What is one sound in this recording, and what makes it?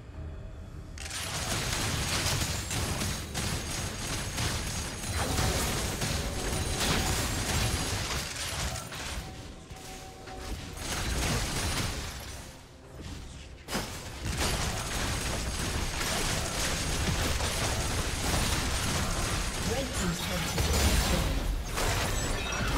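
Game spell effects and attacks crackle and burst during a fight.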